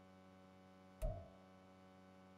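A menu selection sound clicks once with a short thump.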